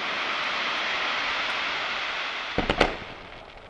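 Fireworks crackle and sizzle as sparks fall.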